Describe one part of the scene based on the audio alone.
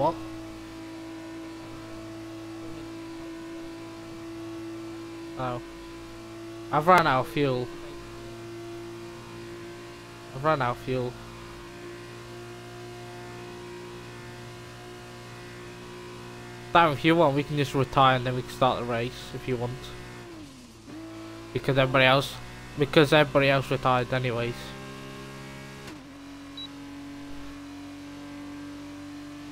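A racing car engine drones at a high, steady pitch, dipping briefly as it slows.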